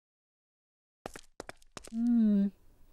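Footsteps tap on hard stone steps.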